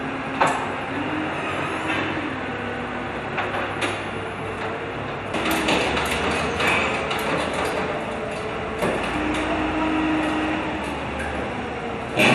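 A forklift engine hums and whines.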